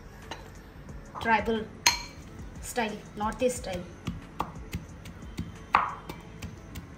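A pestle knocks and grinds against a metal mortar, crushing nuts.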